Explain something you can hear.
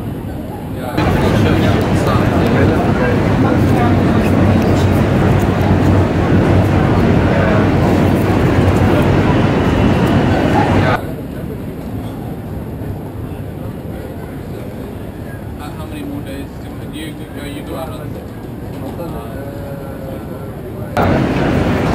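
Paper crinkles and rustles close by as it is folded.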